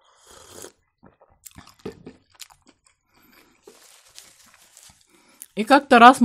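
A woman chews food with soft smacking sounds.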